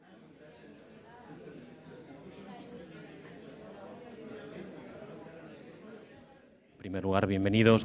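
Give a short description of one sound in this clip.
A crowd of people chatter quietly in a room.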